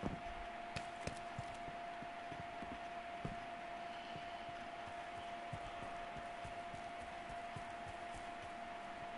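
Footsteps run quickly over stone and grass.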